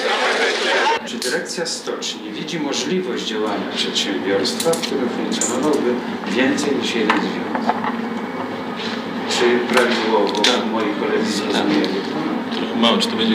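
A man speaks calmly in a quiet room.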